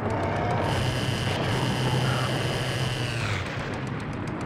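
A large monster shrieks.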